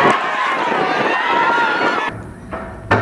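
A crowd cheers outdoors.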